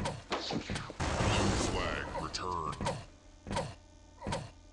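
An electric beam weapon buzzes and crackles.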